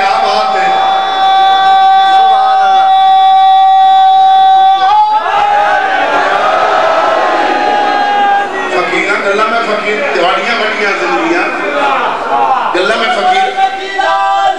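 A crowd of men chants loudly together in an echoing hall.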